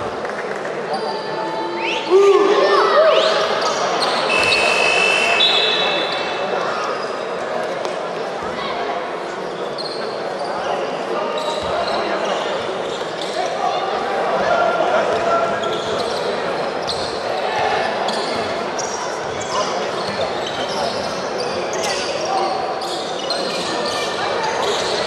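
A crowd murmurs and cheers throughout a large echoing hall.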